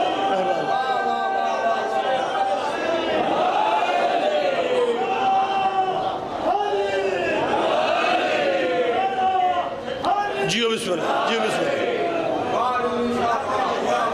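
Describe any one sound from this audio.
A middle-aged man speaks loudly and passionately through a microphone, his voice echoing over loudspeakers.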